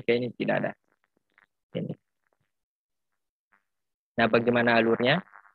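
A young man speaks calmly through an online call microphone, in short bursts with pauses.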